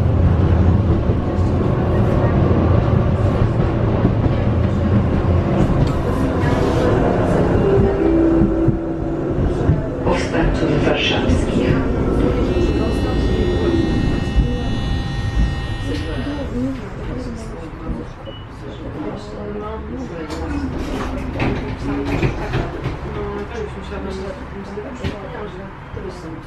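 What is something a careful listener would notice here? A tram rumbles and hums steadily as it rolls along the tracks.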